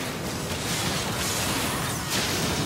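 Magic blasts and explosions burst in a hectic game battle.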